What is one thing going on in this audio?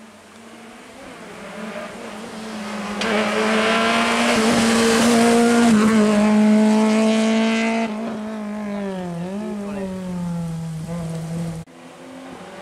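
A small rally car's engine screams as it approaches and speeds past, changing gear.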